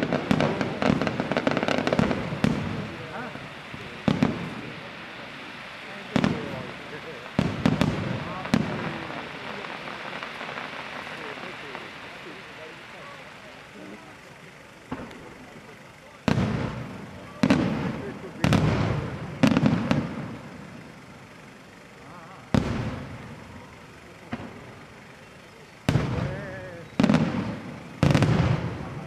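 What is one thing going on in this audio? Aerial firework shells burst with loud booms that echo outdoors.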